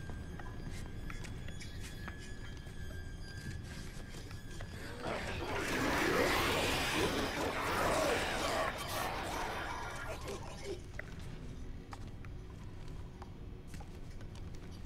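Footsteps shuffle slowly across a metal floor.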